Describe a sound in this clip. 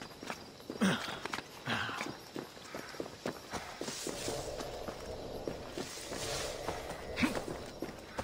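Hands and feet scrape and knock against rock during a climb.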